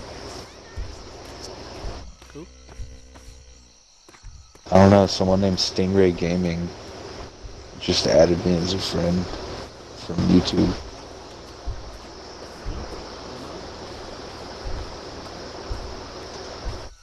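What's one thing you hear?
Insects buzz steadily outdoors.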